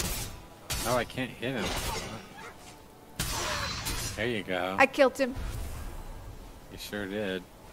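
Weapon blows thud against a creature in a fight.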